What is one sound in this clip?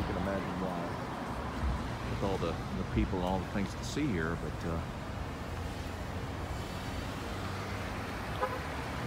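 Traffic hums steadily on a street outdoors.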